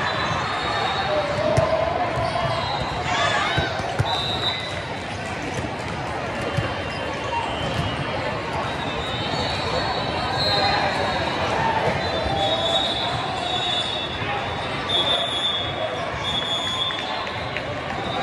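Sneakers squeak sharply on a hard court.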